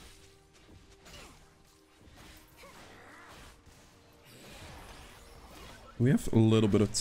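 Game sound effects of magic spells and hits play.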